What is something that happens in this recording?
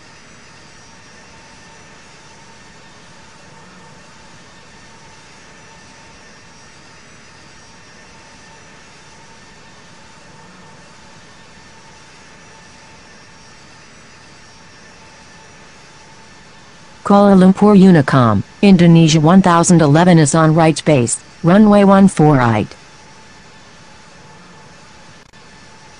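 A jet engine drones steadily and faintly.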